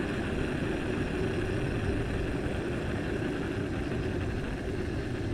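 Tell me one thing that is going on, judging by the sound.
Bicycle tyres roll steadily over smooth pavement.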